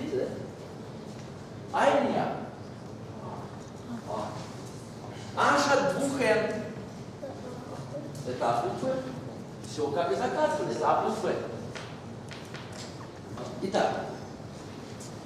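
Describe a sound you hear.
An older man speaks calmly and deliberately, pausing between phrases.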